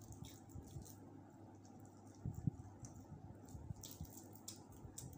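Crispy chicken skin crackles as fingers tear it apart.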